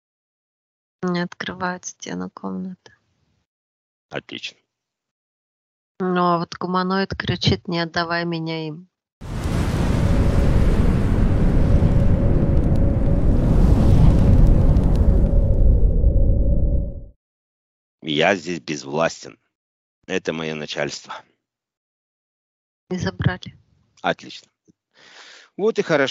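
A woman speaks softly and slowly through a headset microphone.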